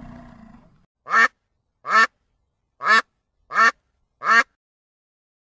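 A goose honks loudly several times.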